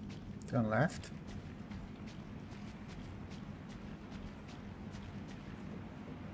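Footsteps crunch steadily on a gritty floor in an echoing tunnel.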